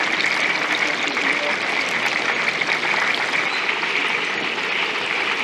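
Food sizzles and crackles loudly in hot frying oil.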